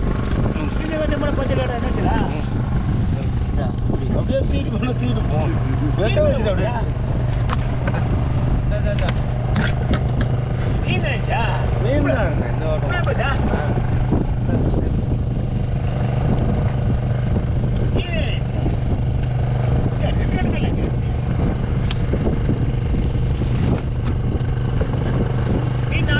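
A boat engine hums steadily throughout.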